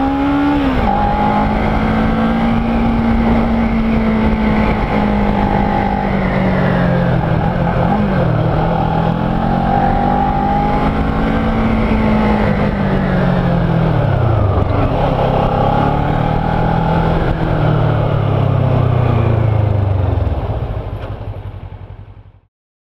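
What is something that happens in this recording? A motorcycle engine hums close by, rising and falling in pitch as it shifts gears.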